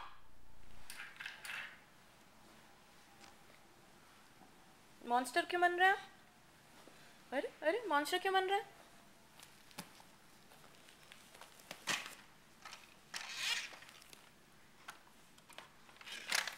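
A toddler climbs about, rustling fabric and bumping a cushion.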